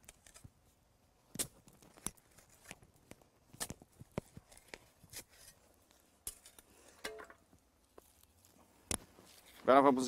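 A shovel scrapes and crunches into soil.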